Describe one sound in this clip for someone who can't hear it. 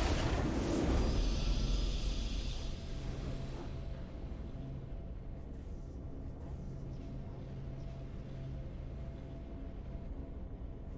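A triumphant game fanfare swells and then fades to a quiet hum.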